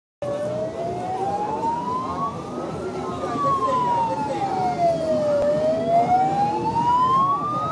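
A siren wails, slowly rising and falling.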